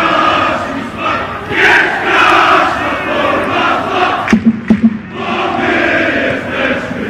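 A large crowd of fans chants loudly in unison in an open stadium.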